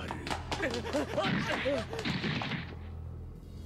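A man cries out in fright.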